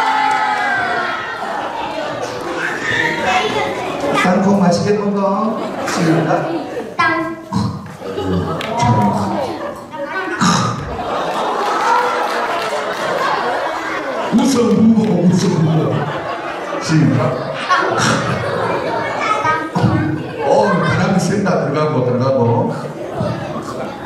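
Children talk and call out in a crowd.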